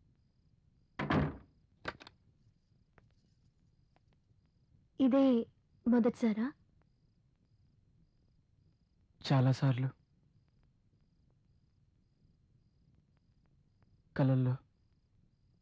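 A young man speaks in short, calm phrases, close by.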